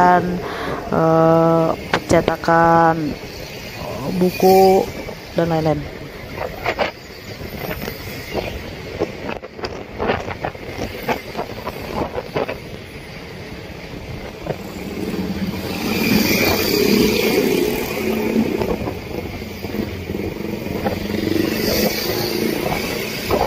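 Motorcycle engines hum as they ride along a busy street.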